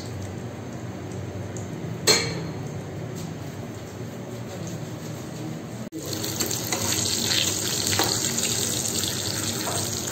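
Patties sizzle as they fry in hot oil in a pan.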